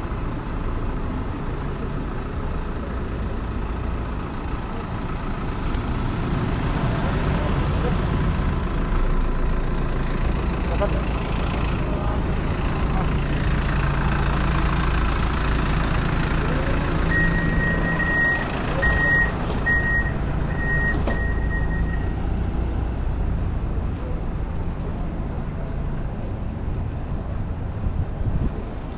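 Traffic rumbles steadily on a city street outdoors.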